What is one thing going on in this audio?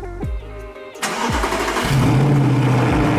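A car engine starts with a sharp roar.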